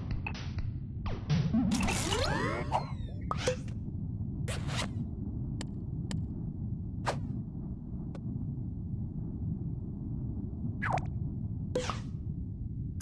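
Short game menu clicks and chimes sound as options are picked.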